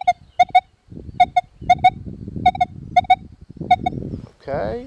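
A metal detector gives short, repeated double beeps.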